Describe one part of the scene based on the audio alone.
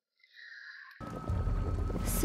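A young woman sings.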